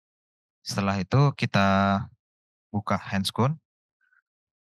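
A young man speaks with animation through a headset microphone.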